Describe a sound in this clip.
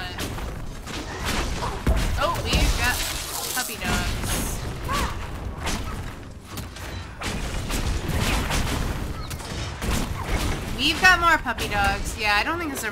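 Magic spells whoosh and burst with loud blasts.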